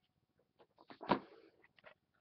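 A card is pulled from a stack with a short scrape.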